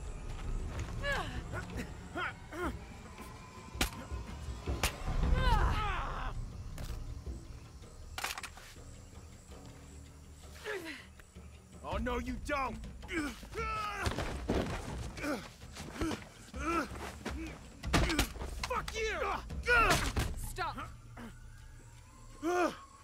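A young woman grunts and cries out with effort close by.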